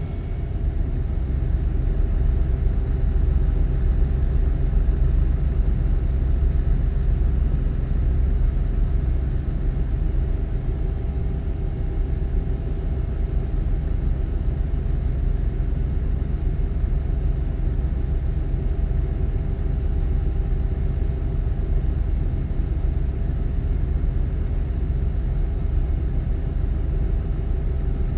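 A truck engine drones steadily at cruising speed.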